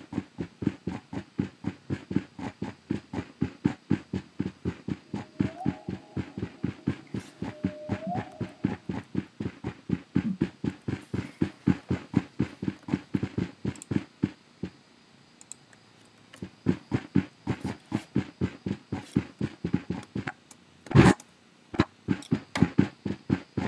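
Footsteps tread quickly and steadily through grass.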